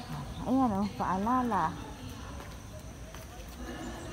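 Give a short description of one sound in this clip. A woman's footsteps tap on pavement.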